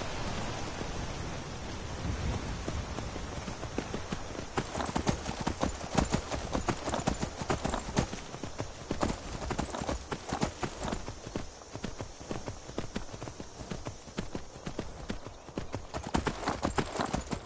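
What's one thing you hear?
Horse hooves clop quickly on stone and earth.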